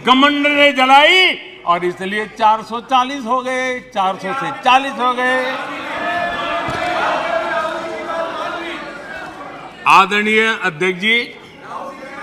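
An elderly man speaks with animation through a microphone in a large hall.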